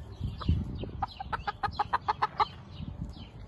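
A hen clucks in short, rapid calls close by.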